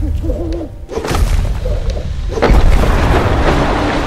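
Ice cracks and bursts with a rushing crash.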